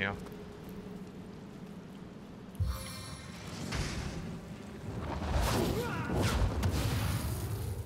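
Flames crackle and roar.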